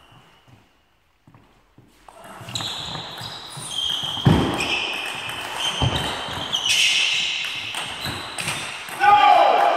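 A table tennis ball clicks back and forth on paddles and the table in a large echoing hall.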